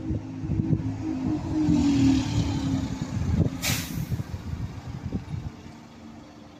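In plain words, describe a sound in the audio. A bus engine revs and fades as the bus pulls away.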